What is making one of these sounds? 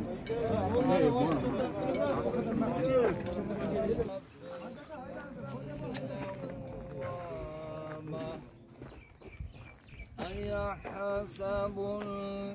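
Several men talk together outdoors.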